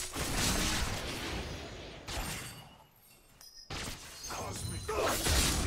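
Game spells and hits crackle and clash.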